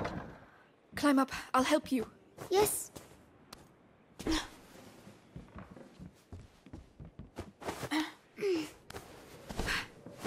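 A young girl speaks up close.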